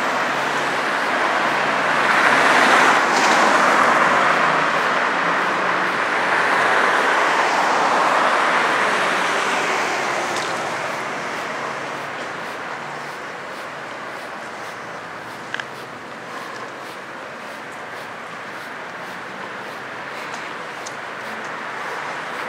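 Traffic hums steadily in the distance.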